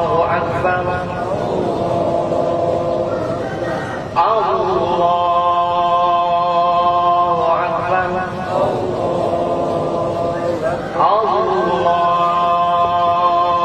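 A man chants a prayer in a long, drawn-out voice over a loudspeaker, outdoors.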